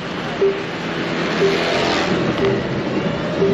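A scooter passes close by.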